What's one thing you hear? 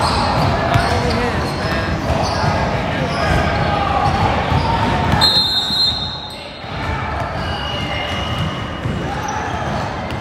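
Young boys call out to each other in a large echoing gym.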